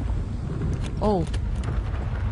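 A young woman makes a short vocal sound close to a microphone.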